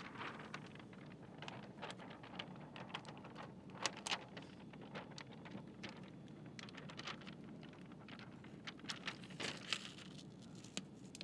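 A plastic sheet crinkles and rustles close by.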